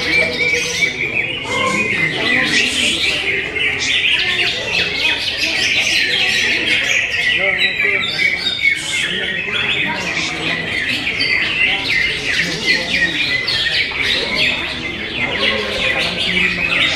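A small bird chirps and twitters rapidly and without pause.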